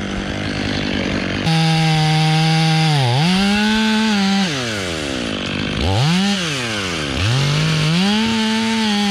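A chainsaw engine idles and then revs up and down loudly, close by.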